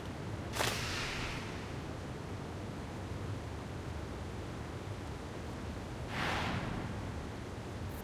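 A soft magical shimmer sweeps up and fades.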